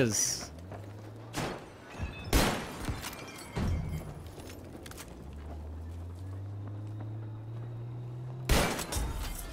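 A shotgun fires with loud booming blasts.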